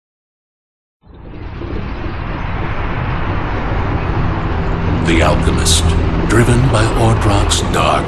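A huge machine rumbles deeply and grows louder.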